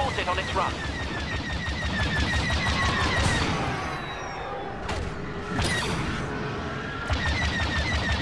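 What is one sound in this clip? A spacecraft engine roars steadily.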